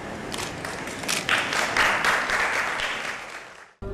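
People clap their hands in applause.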